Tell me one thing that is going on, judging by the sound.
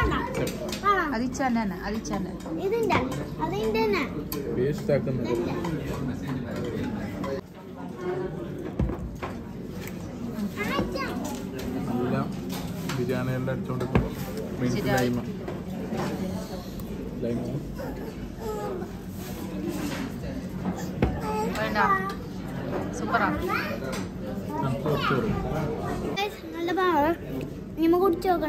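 Voices chatter in the background of a busy room.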